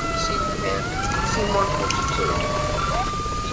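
A fire truck's air horn blares in short blasts.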